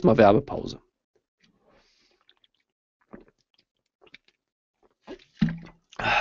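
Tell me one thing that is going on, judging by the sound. A man drinks from a plastic bottle and swallows.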